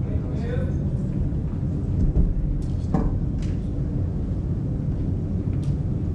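Young men murmur and talk quietly in a large echoing room.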